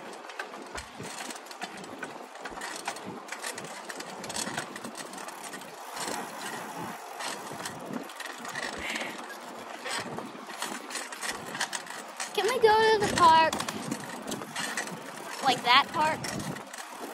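Wind rushes past outdoors while riding along.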